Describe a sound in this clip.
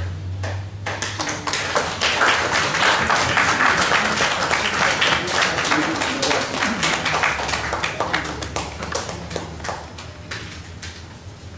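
A crowd applauds in a room, then the clapping slowly fades.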